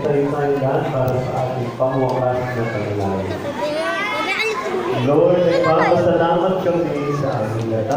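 A man speaks into a microphone through a loudspeaker.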